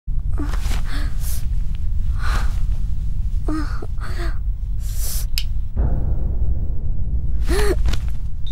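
A young woman speaks softly on a phone close by.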